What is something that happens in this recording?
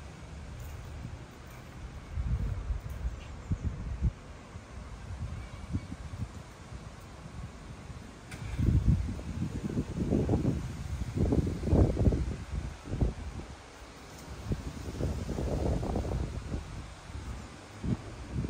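Wind gusts and buffets outdoors in bursts.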